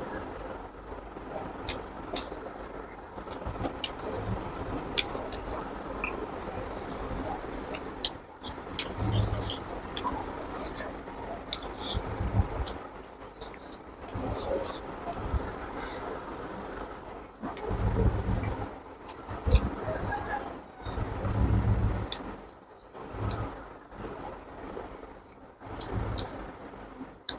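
Fingers squish and scoop food.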